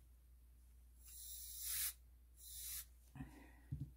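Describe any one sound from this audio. A can of compressed air hisses in short bursts.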